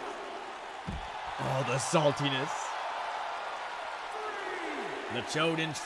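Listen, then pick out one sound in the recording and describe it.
A crowd cheers steadily.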